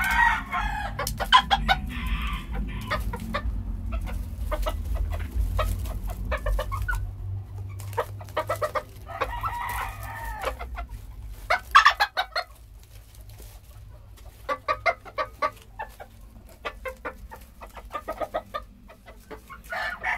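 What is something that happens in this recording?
Chicken beaks peck with quick sharp taps.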